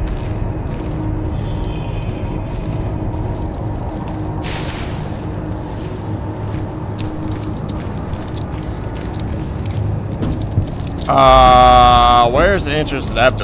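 Footsteps crunch over dry ground and gravel.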